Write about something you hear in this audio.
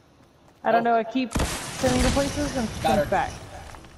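A launcher fires with loud blasts.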